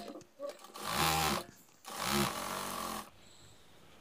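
A sewing machine runs in short bursts.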